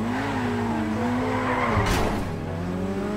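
Tyres screech briefly as a car swerves around a corner.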